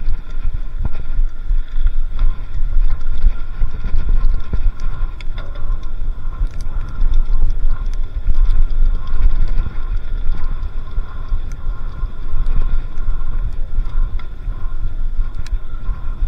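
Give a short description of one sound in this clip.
Bicycle tyres roll over a sandy dirt track.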